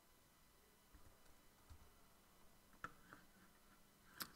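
Playing cards rustle and snap as they are shuffled by hand.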